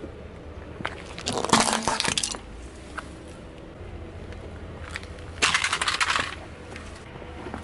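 Hard plastic cracks and crunches under a car tyre.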